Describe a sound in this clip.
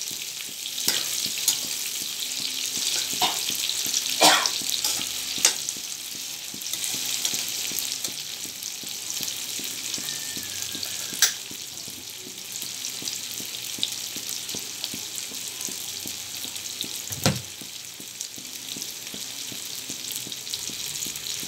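Tofu sizzles and crackles in hot oil.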